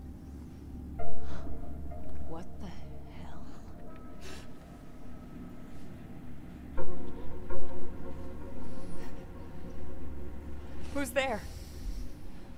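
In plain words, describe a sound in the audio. A young woman asks something in a hushed, uneasy voice.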